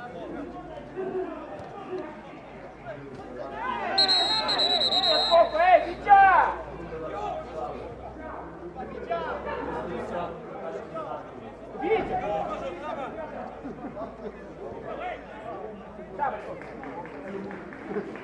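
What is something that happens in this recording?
Young men shout across an open field.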